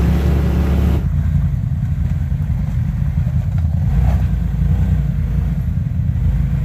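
Another off-road vehicle's engine revs as it climbs.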